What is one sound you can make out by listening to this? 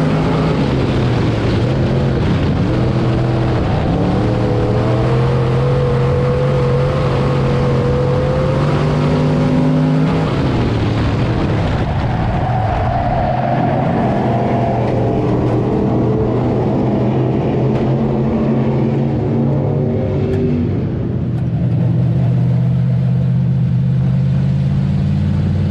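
The car's body rattles and shakes over a rough dirt track.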